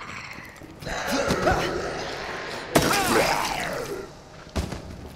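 A zombie groans and snarls.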